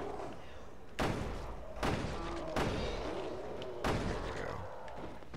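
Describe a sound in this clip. Gunshots ring out in quick bursts, with echoes.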